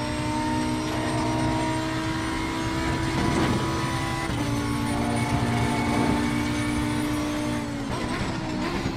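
A racing car engine roars steadily at high revs, dropping in pitch as it shifts gears.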